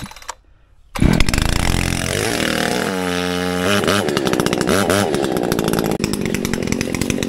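A chainsaw engine starts and runs loudly.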